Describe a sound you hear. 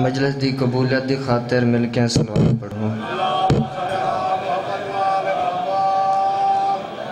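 A young man chants loudly into a microphone over loudspeakers.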